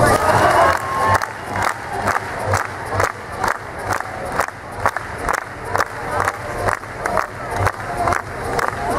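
A crowd claps steadily in rhythm in a large echoing hall.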